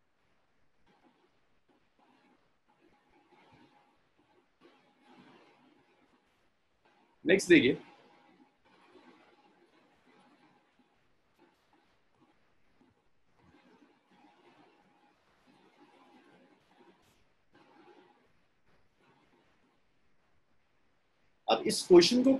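A young man speaks quietly and calmly over a microphone.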